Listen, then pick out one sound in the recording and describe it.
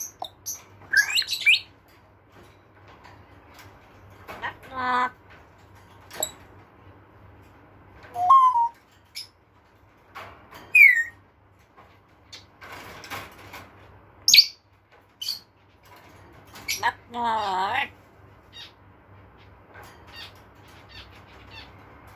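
A parrot's claws and beak clatter against a wire cage.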